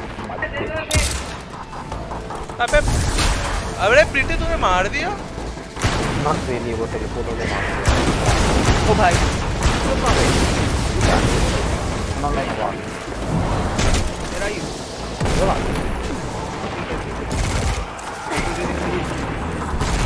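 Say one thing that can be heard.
Gunshots crack and echo in bursts.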